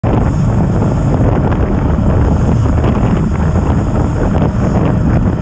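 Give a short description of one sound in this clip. Wind rushes loudly past a moving bicycle.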